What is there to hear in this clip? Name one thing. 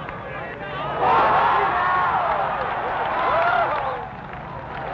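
A crowd cheers and groans loudly outdoors.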